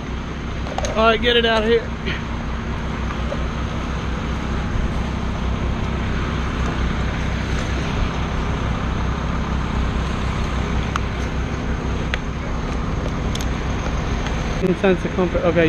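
A chainsaw engine runs with a steady drone.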